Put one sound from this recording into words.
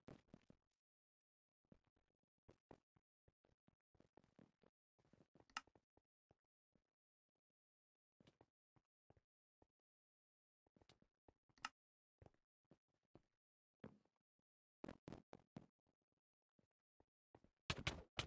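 A touchscreen keyboard gives short clicks as keys are tapped.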